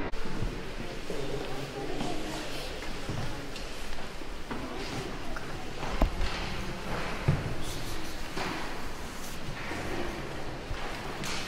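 Footsteps echo on a stone floor in a large, reverberant hall.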